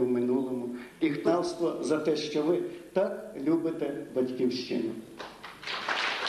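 A woman speaks loudly in an echoing hall.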